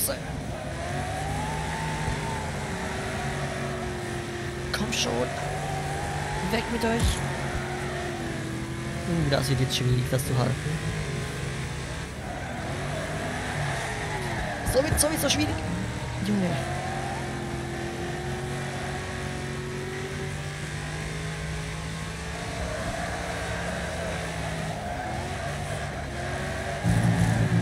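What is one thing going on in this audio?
A race car engine roars steadily and rises and falls in pitch.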